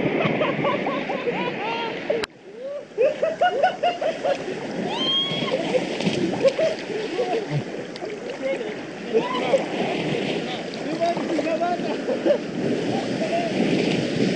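A person plunges into the sea with a splash.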